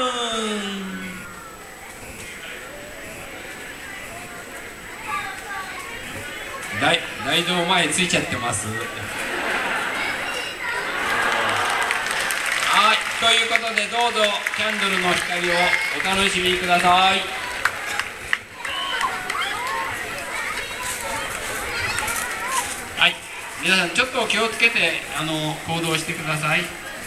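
A large crowd of people chatters and calls out outdoors.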